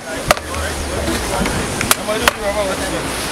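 A knife chops sharply into fish on a hard surface.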